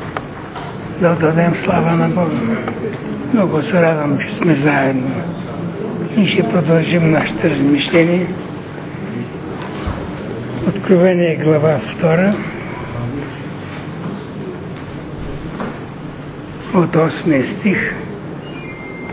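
An elderly man reads aloud in a loud, earnest voice.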